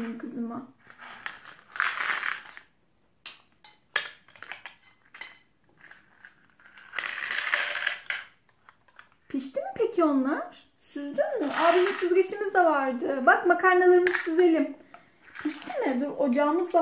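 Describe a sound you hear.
A small girl babbles and speaks in a high voice.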